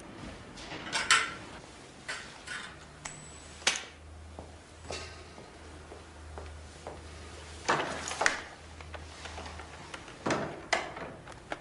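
A man presses buttons on a telephone with sharp clicks.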